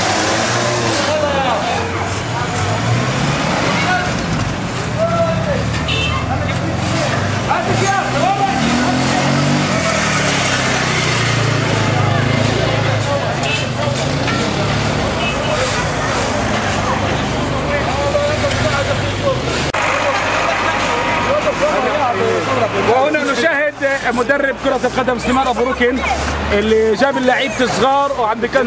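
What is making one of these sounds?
A crowd of men, women and children chatter outdoors.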